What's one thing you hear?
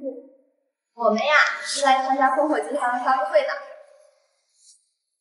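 A young woman speaks cheerfully.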